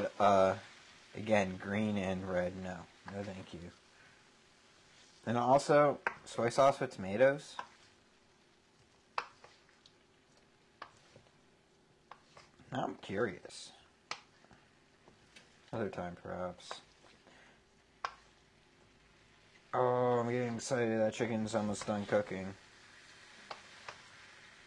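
A wooden spoon scrapes and clacks against a pan while stirring food.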